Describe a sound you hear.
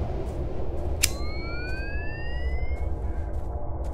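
A handheld electronic device switches on with a short rising chirp.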